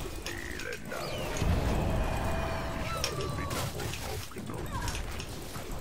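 Game spells whoosh and blast in a fight.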